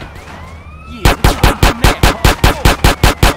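A pistol fires a rapid string of loud shots.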